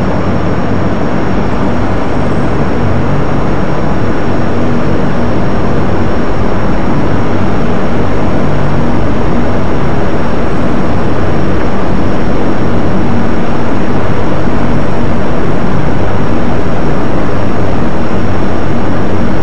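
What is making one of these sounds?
A jet engine roars loudly and steadily, slowly growing louder.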